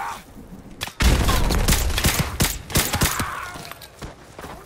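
Gunshots crack loudly in rapid bursts.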